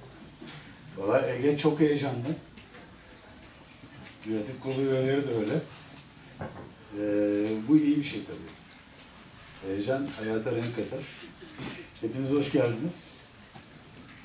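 A man speaks through a microphone in a large hall, pausing between phrases.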